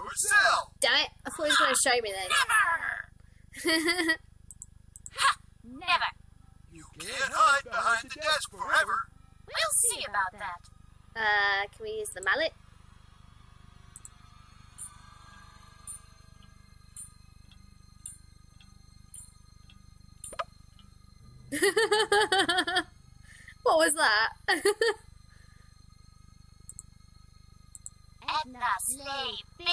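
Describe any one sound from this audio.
A young woman talks close to a microphone with animation.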